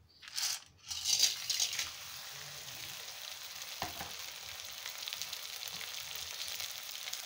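Food sizzles and crackles in hot oil in a pan.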